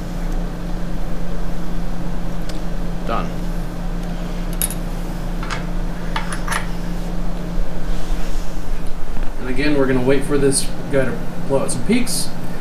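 A lab instrument hums steadily.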